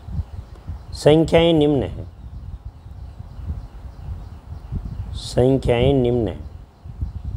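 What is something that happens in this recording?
A middle-aged man speaks calmly and slowly, close to a microphone.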